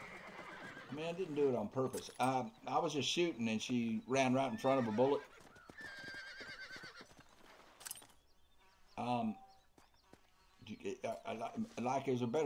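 An elderly man talks with animation into a close microphone.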